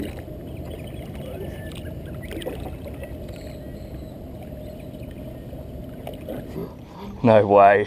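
Water splashes beside a kayak.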